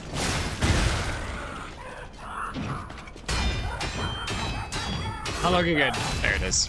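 Heavy blows and crashes of combat hit in quick bursts.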